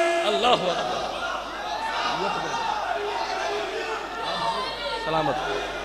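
A crowd of men cheers and shouts.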